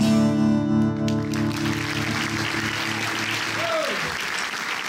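A guitar chord rings out and fades.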